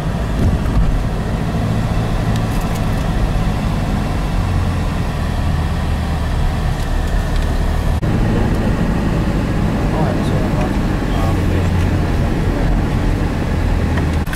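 A car engine hums steadily from inside the car as it drives along.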